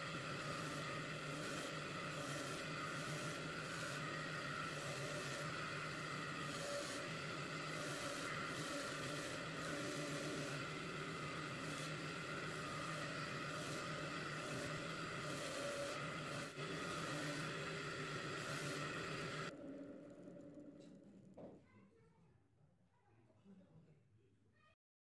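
A bench grinder motor whirs steadily, then winds down.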